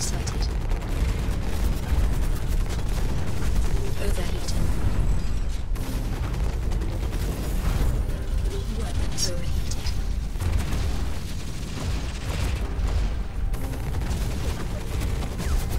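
Heavy machine guns fire in rapid bursts.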